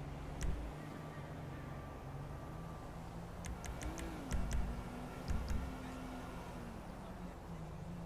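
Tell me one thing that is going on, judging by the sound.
A helicopter engine hums steadily nearby.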